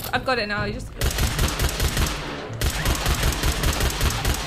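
A laser rifle fires in rapid bursts.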